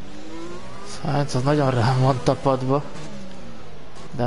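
A racing car engine roars sharply as it revs and slows for a tight corner.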